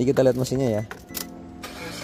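Car keys jingle in a hand.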